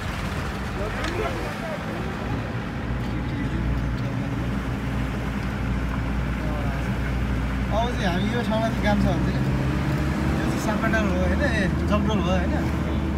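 A young man talks on a phone nearby.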